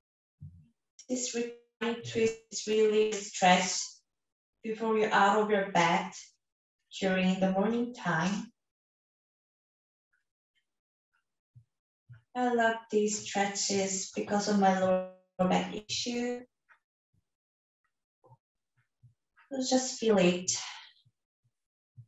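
A woman speaks calmly and softly, close to a microphone.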